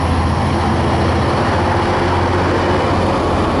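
A diesel-electric locomotive roars as it passes at speed.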